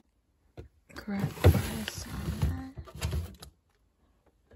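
Plastic food trays rustle and clatter as they are handled.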